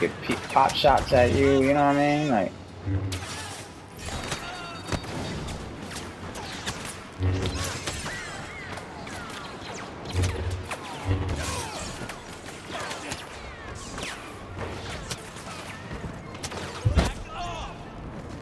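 Blaster shots crack in quick bursts.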